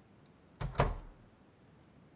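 A wooden door opens with a thud.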